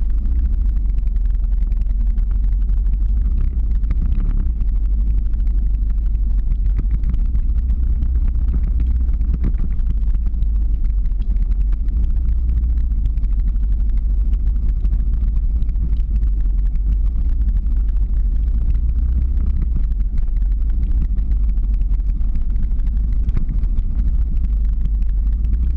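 Skateboard wheels rumble on rough asphalt.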